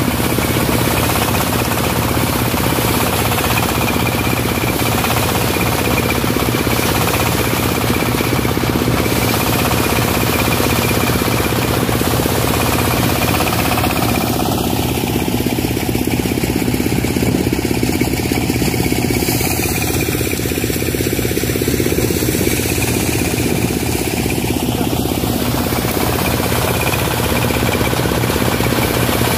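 An engine-driven threshing machine runs with a steady, loud rattling drone.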